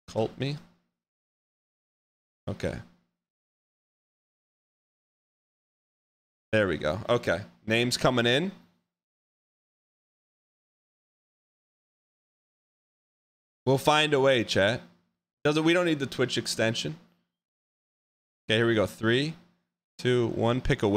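A man talks with animation, close to a microphone, in bursts with pauses.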